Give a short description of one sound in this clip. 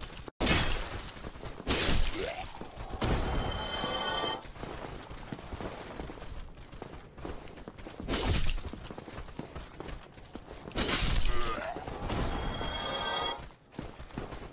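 Metal swords clash and clang in a fight.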